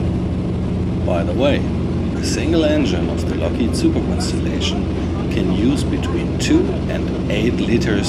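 A man speaks through an intercom headset.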